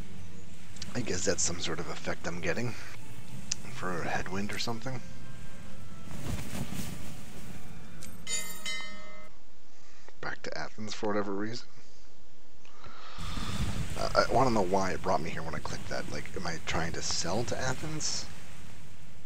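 A man talks calmly through a microphone.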